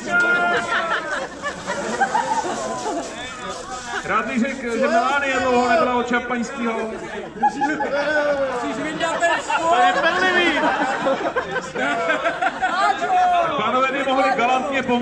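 Young men shout and cheer with excitement outdoors.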